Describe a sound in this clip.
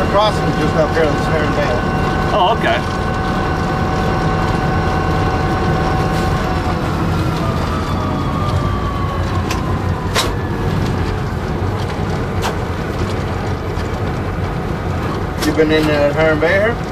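A locomotive engine rumbles steadily up close.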